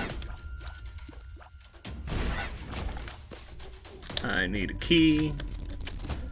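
Game shots pop and splat in quick succession.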